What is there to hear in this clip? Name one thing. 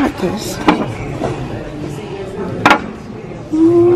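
A wooden spoon clinks against a ceramic dish.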